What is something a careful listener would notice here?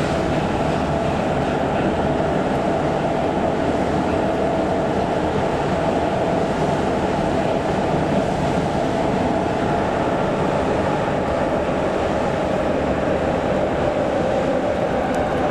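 A subway train rumbles loudly through a tunnel.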